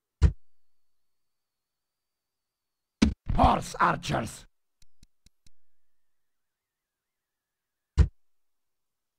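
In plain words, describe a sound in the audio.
A short interface click sounds a few times.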